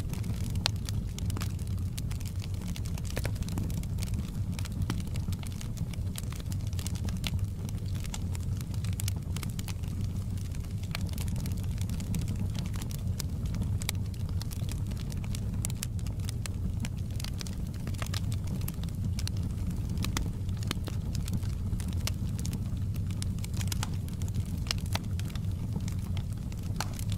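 A log fire roars steadily up close.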